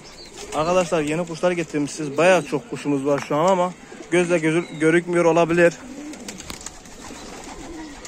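Pigeons flap their wings in flight.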